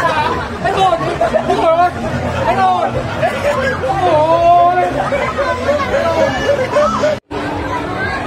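A young man talks and laughs close by with animation.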